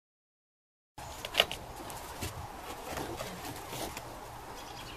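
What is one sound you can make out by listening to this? Plastic plant pots knock and rustle as they are moved.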